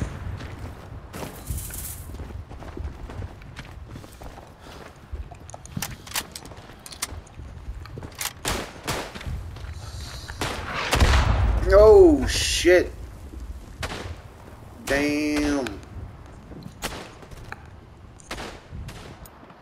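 Rifle shots crack repeatedly in the distance.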